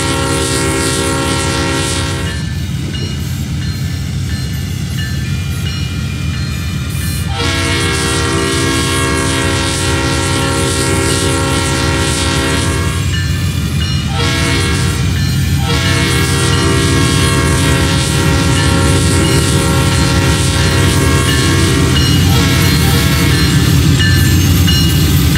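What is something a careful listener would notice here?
A diesel locomotive engine rumbles steadily, growing louder as it approaches.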